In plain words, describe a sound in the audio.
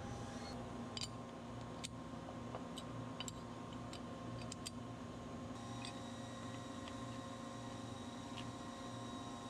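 A metal bar clicks and taps against a metal clamp as it is set in place.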